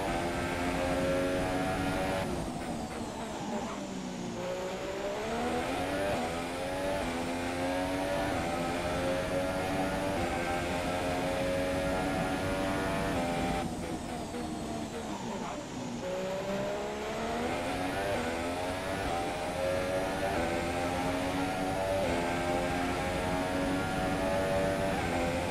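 A racing car engine screams at high revs, dropping in pitch as it slows for corners and climbing again as it accelerates through the gears.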